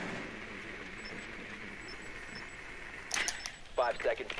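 An explosive charge blasts through a wall with a loud bang.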